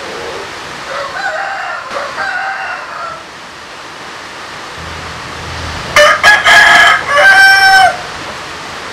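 A rooster crows loudly.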